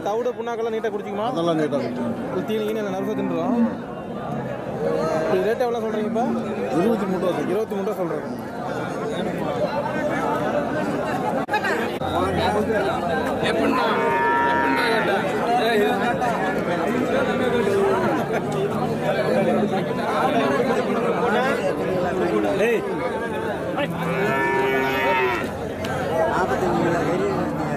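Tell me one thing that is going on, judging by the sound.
Men talk and call out close by in a busy outdoor crowd.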